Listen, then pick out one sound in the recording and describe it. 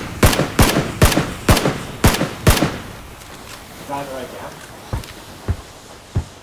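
A rifle fires a series of loud, sharp shots that echo briefly.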